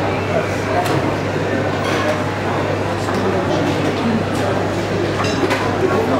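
Metal tongs clink against a tray.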